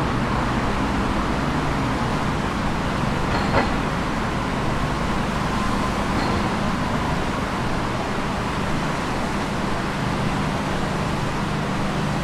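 City traffic hums steadily outdoors nearby.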